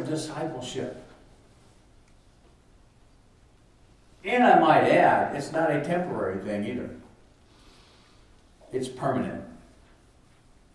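An elderly man speaks calmly and clearly, with a slight echo in a quiet room.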